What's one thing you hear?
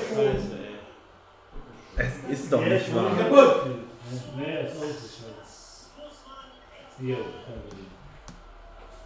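A man talks close to a microphone, with frustration.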